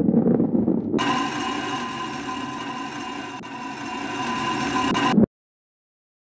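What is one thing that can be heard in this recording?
A ball slides down a tube with a bright rushing hum.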